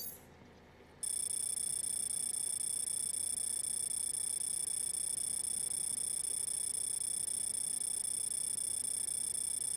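A steady high electronic tone hums.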